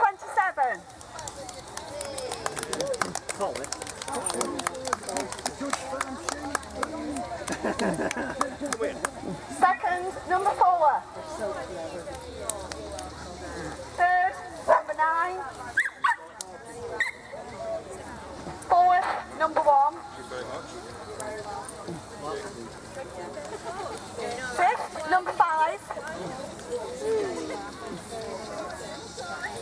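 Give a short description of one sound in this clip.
A woman speaks nearby, announcing calmly.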